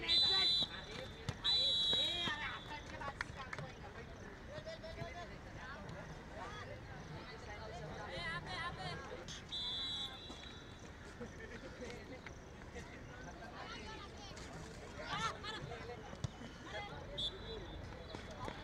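A referee's whistle blows in short, sharp blasts.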